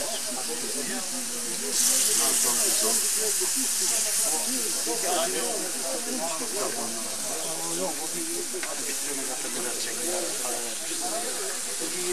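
A campfire crackles and hisses.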